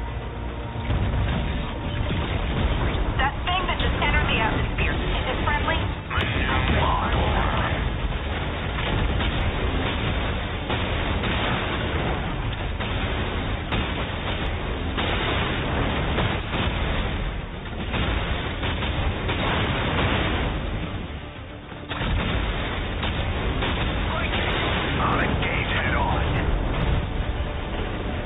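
Game gunfire and laser blasts crackle and roar.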